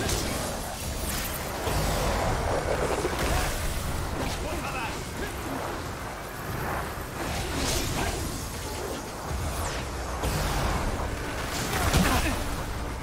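Magic blasts crackle and burst in quick succession.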